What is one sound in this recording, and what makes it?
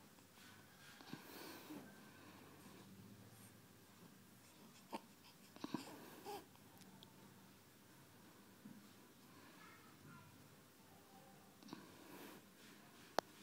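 A newborn baby whimpers and fusses softly, close by.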